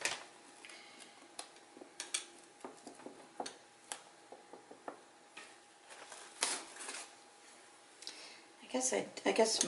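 A plastic paint bottle clicks and taps.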